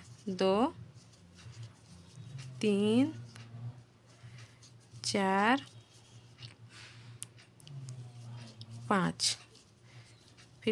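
Yarn rustles softly as a crochet hook works it.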